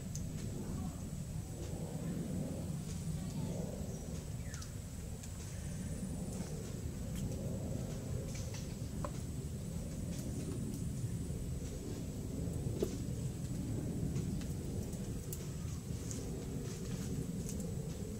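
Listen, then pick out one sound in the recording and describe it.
Dishes clink as they are set down on the ground.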